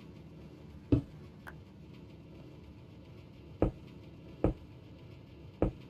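Stone blocks are placed with short, dull thuds.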